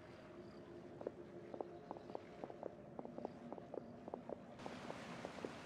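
Footsteps patter softly across grass.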